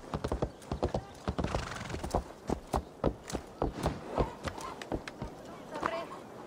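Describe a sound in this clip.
Horse hooves clop steadily on wooden boards.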